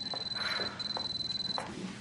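A woman speaks quietly and tensely.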